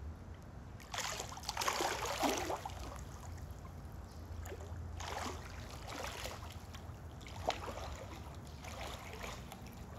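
Water splashes as a swimmer moves through a pool.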